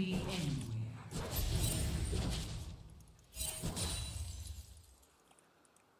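Fantasy battle sound effects whoosh and crackle in quick bursts.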